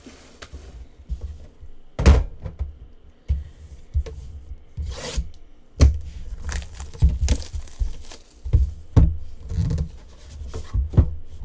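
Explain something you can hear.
Hands handle and tap a cardboard box.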